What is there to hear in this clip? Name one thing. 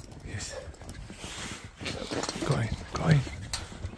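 A dog sniffs and snuffles close by.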